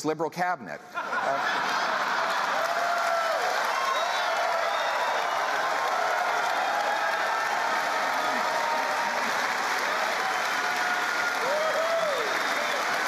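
A large crowd cheers and applauds loudly in a big hall.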